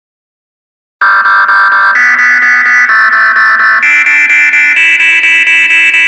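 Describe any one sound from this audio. Bright electronic game music plays with a quick, steady pulse, its tune stepping higher every second or so.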